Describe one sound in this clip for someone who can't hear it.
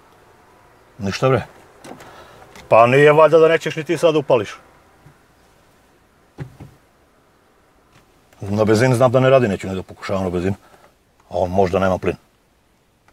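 A middle-aged man speaks close by in short bursts, with pauses.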